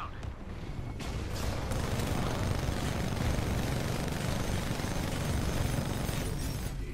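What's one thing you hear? A heavy gun fires in rapid, booming bursts.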